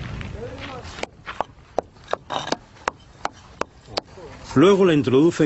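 A pick strikes hard dry ground again and again.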